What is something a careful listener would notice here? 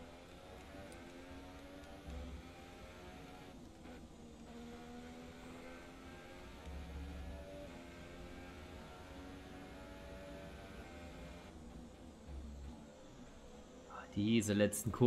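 A racing car engine screams at high revs, rising in pitch and dropping as gears shift.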